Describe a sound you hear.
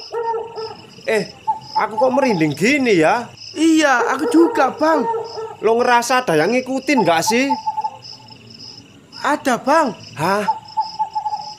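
A young man speaks with animation close by.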